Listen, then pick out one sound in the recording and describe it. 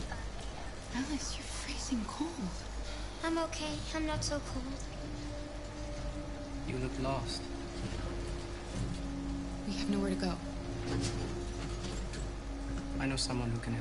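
A young woman speaks softly and gently.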